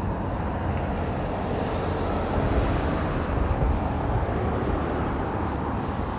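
Traffic rumbles past nearby.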